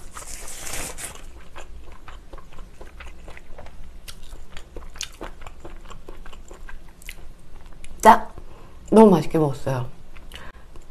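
A young woman makes small mouth clicks close to a microphone.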